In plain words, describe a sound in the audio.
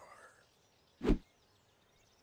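A punch lands with a dull thump.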